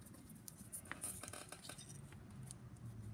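Small metal parts click against a hard surface.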